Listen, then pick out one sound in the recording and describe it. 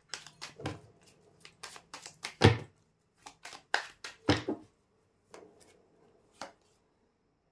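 Playing cards riffle and snap as a deck is shuffled.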